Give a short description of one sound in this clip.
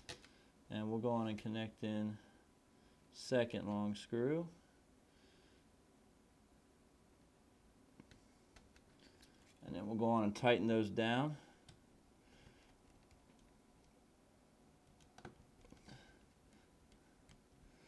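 Small metal screws and parts click softly.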